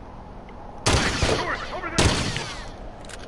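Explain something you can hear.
A pistol fires twice in quick succession.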